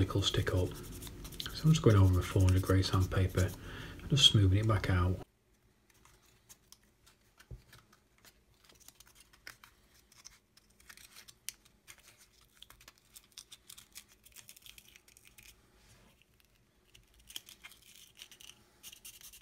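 Sandpaper rubs softly against a thin wooden stick.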